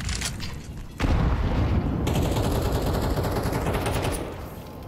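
An automatic rifle fires in a game.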